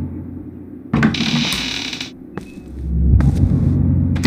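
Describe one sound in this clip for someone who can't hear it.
Papers rustle and scatter onto the floor.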